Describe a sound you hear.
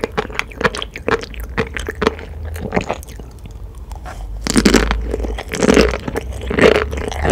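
Tiny beads pop and crunch loudly in a woman's mouth, close to a microphone.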